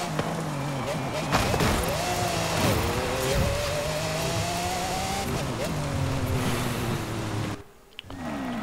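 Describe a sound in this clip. A racing car engine roars and revs at high speed.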